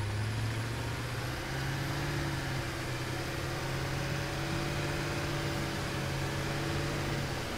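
A heavy vehicle's engine rumbles steadily as it drives over rough ground.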